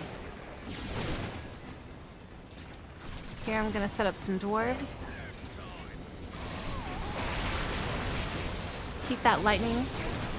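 A magic spell zaps and crackles.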